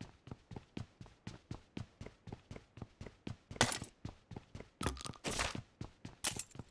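Footsteps run across a wooden floor.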